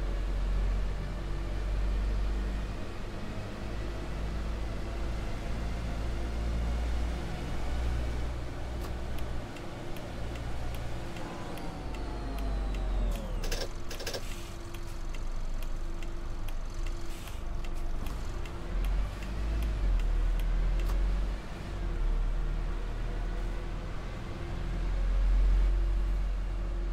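A bus engine rumbles low and steady as the bus drives along.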